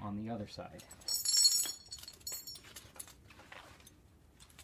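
Metal buckles jingle as a harness is moved on the ground.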